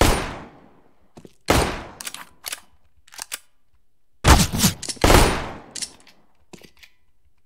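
Loud gunshots ring out in bursts, each followed by a short echoing tail.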